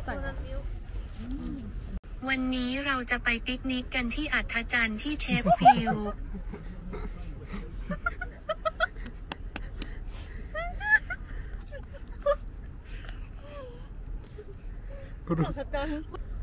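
Young women laugh and chatter close by, outdoors.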